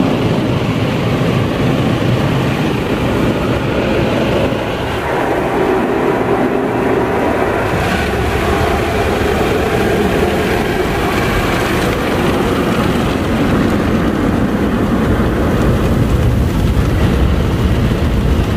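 Car wash brushes scrub and slap against a car's windows.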